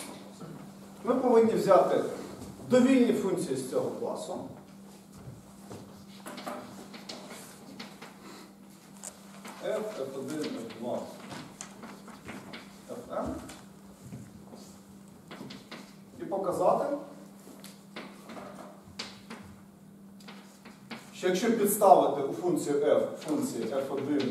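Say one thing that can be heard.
A man speaks calmly in a large echoing room.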